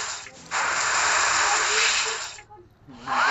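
Water sprays from a shower in a loud hiss.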